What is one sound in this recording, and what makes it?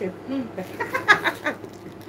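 A middle-aged woman laughs loudly.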